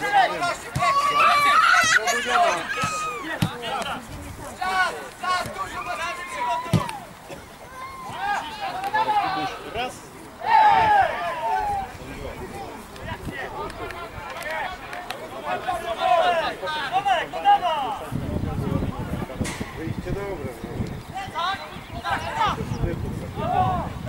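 Young male football players shout to each other across an open outdoor pitch.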